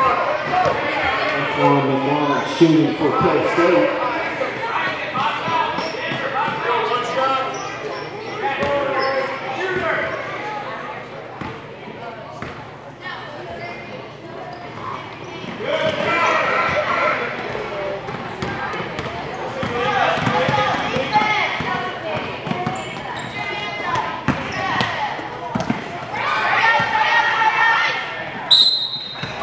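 Spectators and young players shout and call out in an echoing gym.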